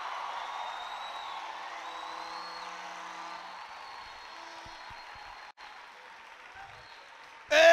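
A crowd claps hands in a large echoing hall.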